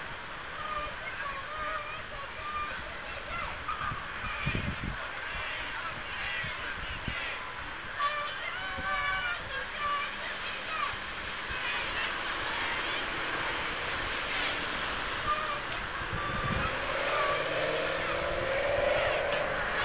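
A crowd of men and women chants and shouts outdoors at a distance.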